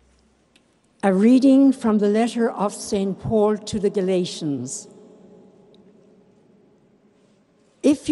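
An elderly woman speaks calmly into a microphone, echoing through a large hall.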